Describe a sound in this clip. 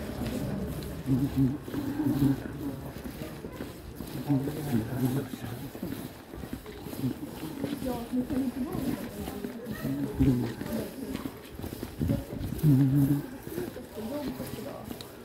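Footsteps tap on a hard floor in an echoing hall.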